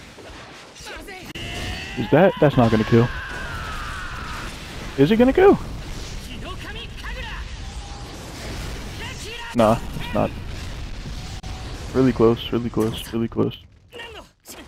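Heavy blows strike with sharp impacts.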